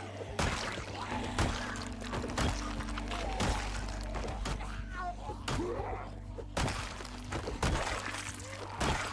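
Heavy blows thud into bodies again and again at a steady pace.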